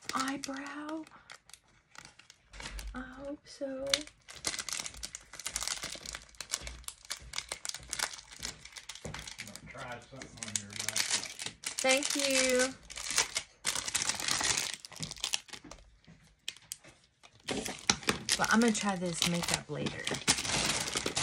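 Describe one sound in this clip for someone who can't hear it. A middle-aged woman talks calmly and close by.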